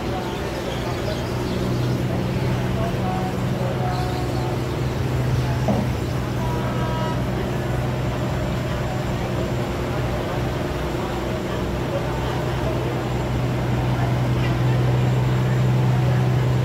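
A barge's diesel engine drones low as the barge moves under way.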